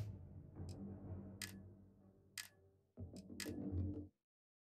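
Menu selection clicks tick sharply a few times.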